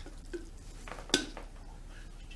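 A glass clinks down on a hard surface.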